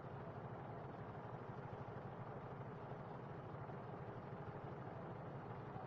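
A motorcycle engine idles close by with a steady low rumble.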